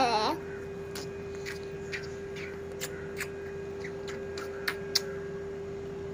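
A woman kisses a toddler's cheek with soft smacking sounds.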